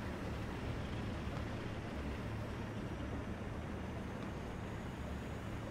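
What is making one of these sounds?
An armoured vehicle's engine rumbles steadily as it drives.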